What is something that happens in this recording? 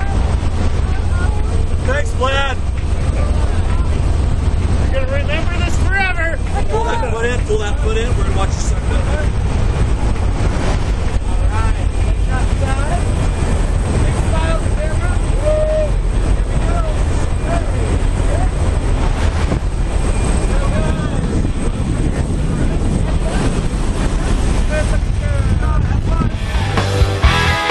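An aircraft engine roars steadily inside a cabin.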